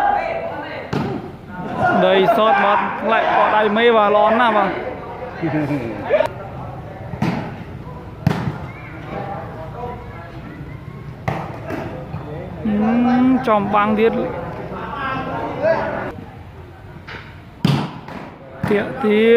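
A ball is struck with sharp thumps.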